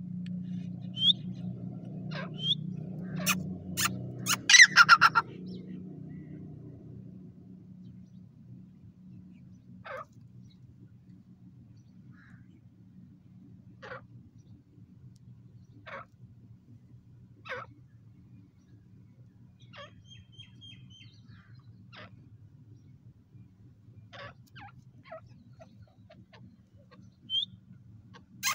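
A grey francolin gives short high calls.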